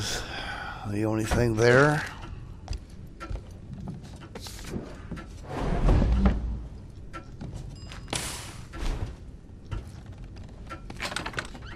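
A wooden door creaks as it is pushed open.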